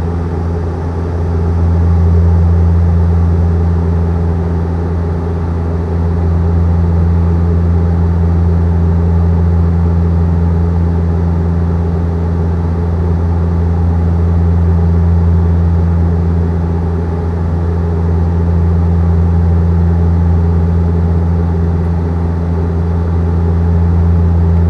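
An airplane's engines drone with a steady, deep roar from inside the cabin.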